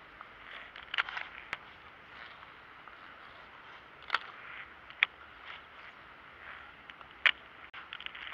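A fishing reel clicks and rattles close by.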